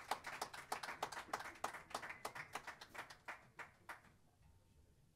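Drums tap out a quick, crisp beat.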